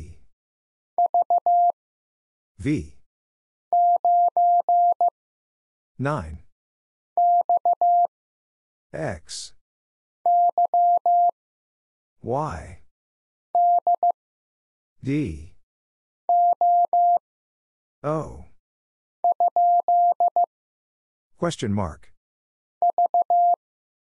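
A telegraph key beeps out short bursts of steady high tones in quick rhythm.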